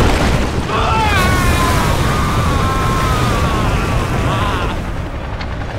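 A huge beast roars with a long, wailing cry.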